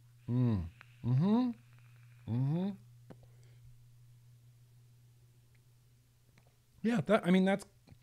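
A man speaks with animation, close into a microphone.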